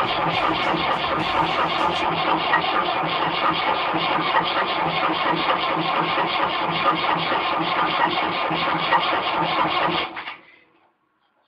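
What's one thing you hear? A vehicle engine rumbles loudly inside a cab.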